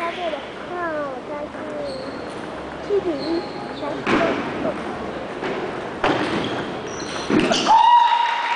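A table tennis ball clicks off paddles and bounces on the table.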